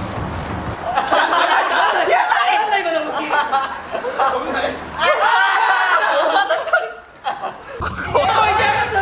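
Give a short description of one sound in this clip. Young men cheer and laugh loudly.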